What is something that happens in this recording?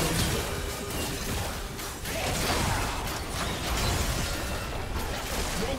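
Game spells burst and crackle in a fast fight.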